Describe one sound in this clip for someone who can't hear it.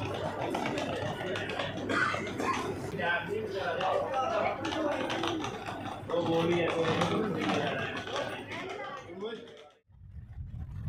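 Several men and women chatter nearby.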